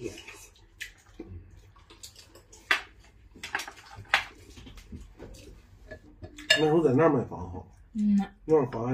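Chopsticks clink against bowls and plates.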